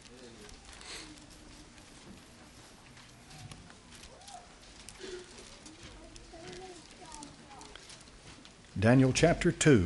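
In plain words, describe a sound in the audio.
People murmur quietly in a crowd.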